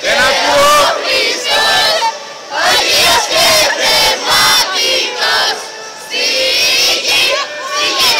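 Young girls shout and sing excitedly close by.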